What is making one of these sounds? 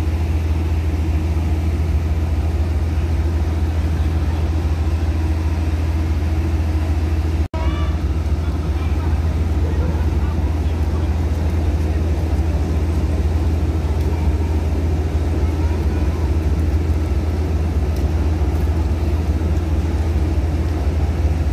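A train rumbles steadily past on an elevated track nearby.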